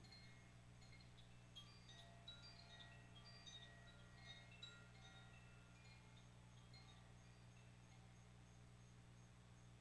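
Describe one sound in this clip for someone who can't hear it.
Wind chimes tinkle brightly with quick, scattered ringing notes that fade away.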